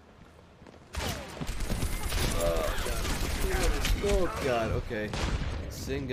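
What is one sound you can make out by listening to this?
Gunfire rattles rapidly in a game.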